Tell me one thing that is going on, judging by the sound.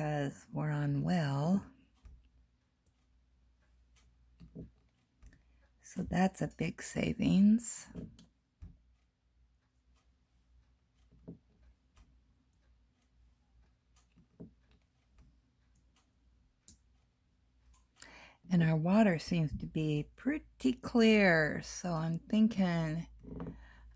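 A small pen tool taps softly on a plastic sheet.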